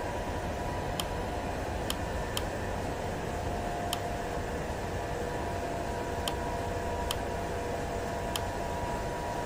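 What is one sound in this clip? Button clicks sound a few times in quick succession.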